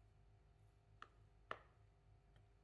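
A spatula knocks twice against a glass bowl.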